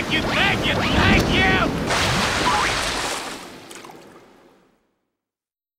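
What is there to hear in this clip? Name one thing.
Water sprays and splashes, then fades away.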